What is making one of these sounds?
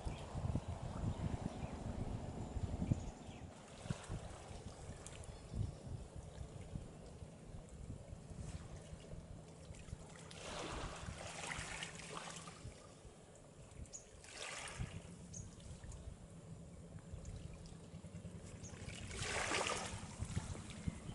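Waves wash softly on the sea.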